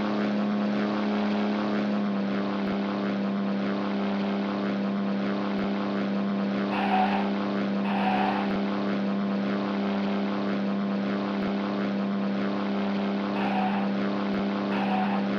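A propeller plane's engines drone steadily at idle.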